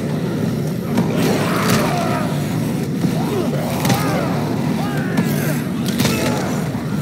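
Heavy kicks thud against bodies.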